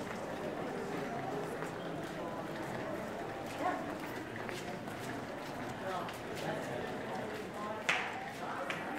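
A crowd of people chatters in a busy outdoor street.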